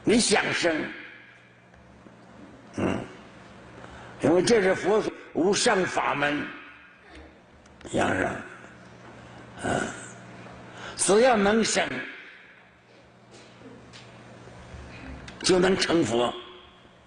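An elderly man speaks slowly and calmly into a microphone, with pauses between phrases.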